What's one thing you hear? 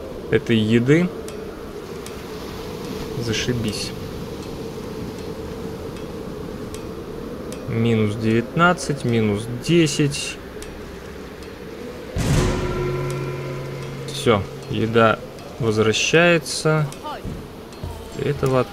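Wind howls steadily through a snowstorm.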